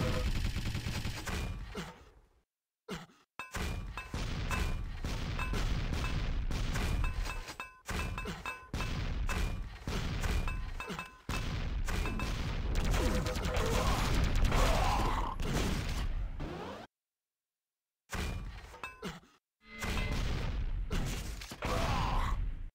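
Rapid gunfire and explosions crackle and boom in a video game.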